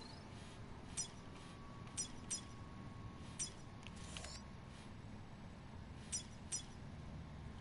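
Soft electronic clicks tick now and then.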